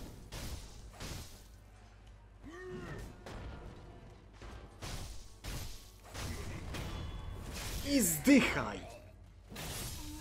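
Swords clash and strike sharply in a fight.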